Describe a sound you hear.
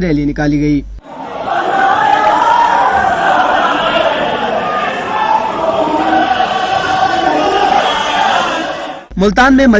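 A large crowd chants and shouts outdoors.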